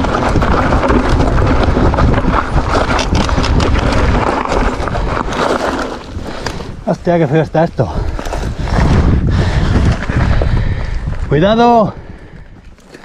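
Bicycle tyres crunch and rattle over a rocky trail.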